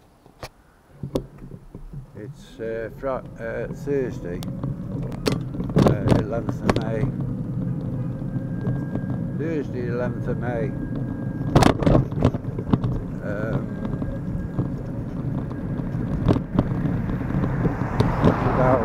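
Bicycle tyres roll over a road with a steady low rumble.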